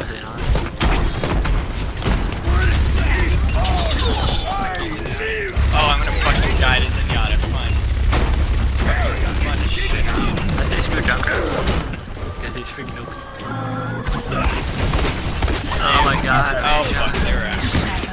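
Gunshots crack back and forth.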